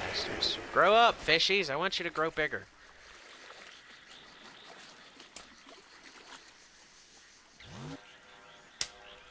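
A river rushes and splashes nearby.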